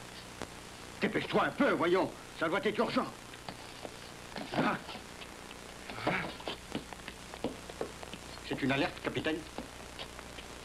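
Men talk in short exchanges.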